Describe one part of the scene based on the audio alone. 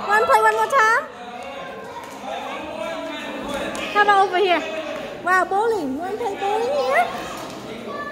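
A young child squeals in a high voice.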